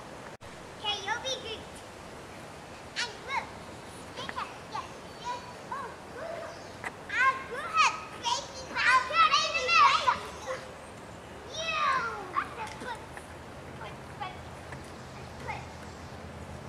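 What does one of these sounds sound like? Young children shout and squeal playfully nearby.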